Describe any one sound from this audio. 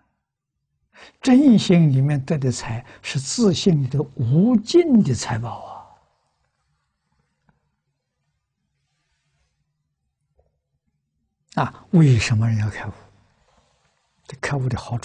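An elderly man speaks calmly and expressively into a close microphone, with pauses.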